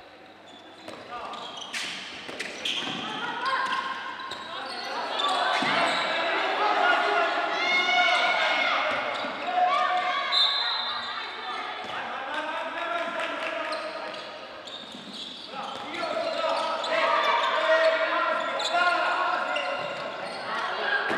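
A handball bounces on the court.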